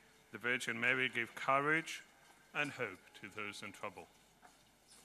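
A man chants into a microphone.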